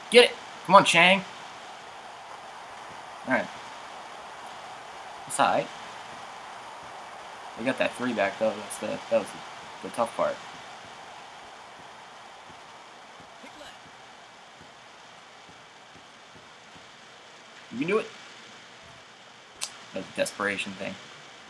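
A young man talks in short bursts through a close microphone.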